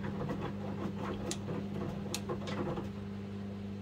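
Wet laundry tumbles and sloshes in a front-loading washing machine drum.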